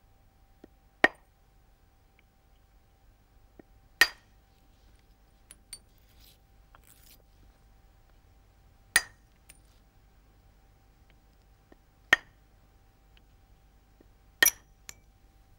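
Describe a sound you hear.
A tool presses sharp flakes off a flint edge, each with a crisp snap.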